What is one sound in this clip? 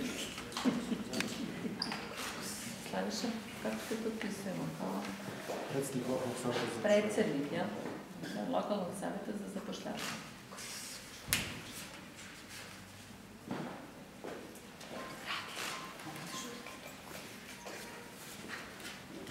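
Paper rustles as sheets are turned and handled.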